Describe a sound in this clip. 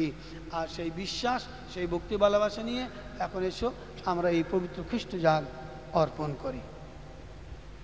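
A man speaks into a microphone, heard through loudspeakers in a large echoing hall.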